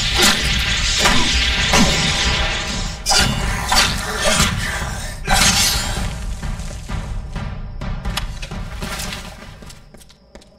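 Game combat sounds clash and strike loudly.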